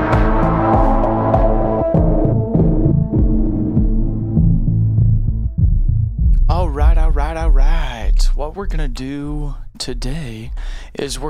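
Electronic synth music plays with a deep pulsing bass.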